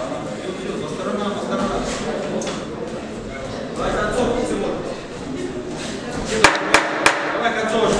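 A crowd murmurs in the background of an echoing hall.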